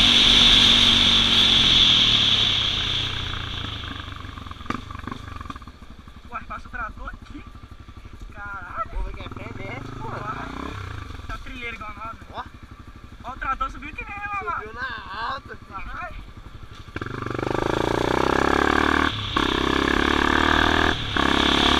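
A motorcycle engine drones and revs nearby.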